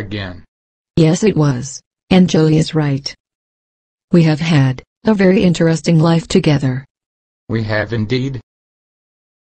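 An elderly woman speaks cheerfully.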